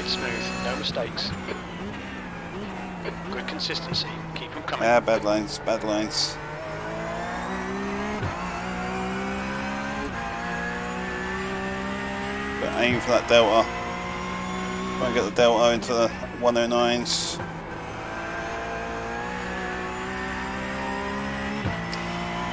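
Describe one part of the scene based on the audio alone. A racing car engine drones and rises and falls in pitch as it shifts gears.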